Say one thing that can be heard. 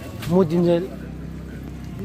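A dog rustles a plastic sack.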